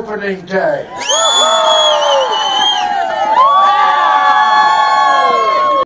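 A crowd cheers and whoops loudly.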